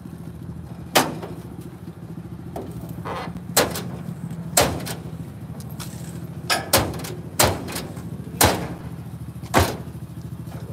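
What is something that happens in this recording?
Metal clanks sharply several times.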